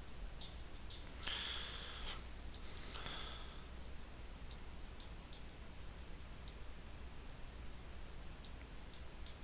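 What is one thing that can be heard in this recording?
Grains of sugar trickle and patter softly into a cup.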